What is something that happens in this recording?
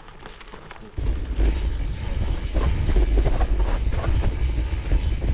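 Tyres roll and crunch over a dirt path.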